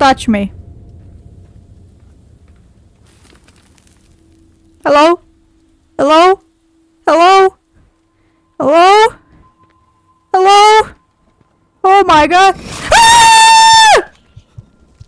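A young woman yells and shrieks in short bursts, close to a microphone.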